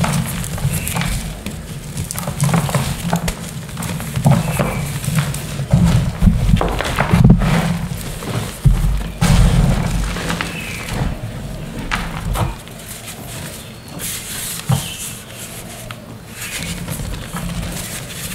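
Gloved hands rub and scrunch a damp cloth in gritty powder.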